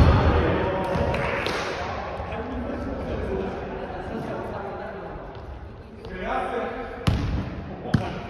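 Young men call out to each other across the echoing gym.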